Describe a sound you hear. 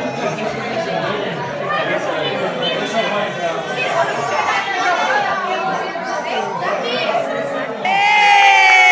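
A crowd of adults and children chatters nearby.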